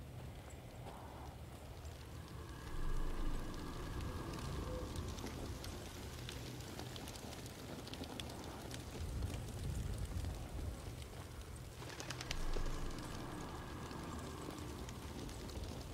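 Footsteps crunch over dirt and debris.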